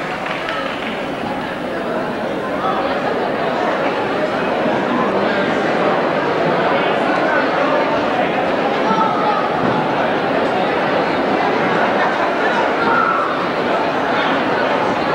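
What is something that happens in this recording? A live band plays loudly in an echoing hall.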